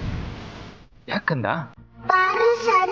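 A man speaks in a low, firm voice.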